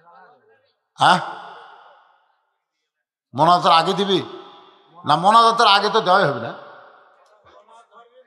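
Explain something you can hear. An elderly man preaches loudly and with fervour into a microphone, his voice echoing through loudspeakers.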